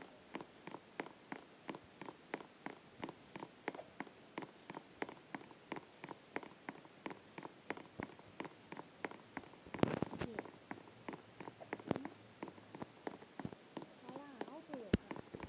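Quick footsteps patter on hard steps.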